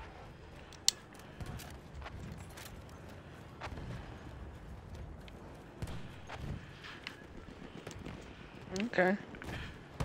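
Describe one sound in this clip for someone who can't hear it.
A rifle clicks and rattles as it is reloaded.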